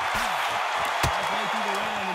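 A punch lands with a sharp thud.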